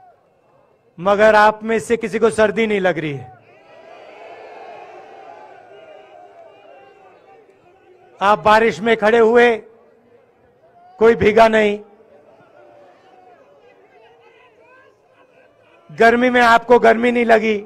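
A man speaks loudly and forcefully into a microphone, heard through loudspeakers outdoors, in short bursts with pauses between.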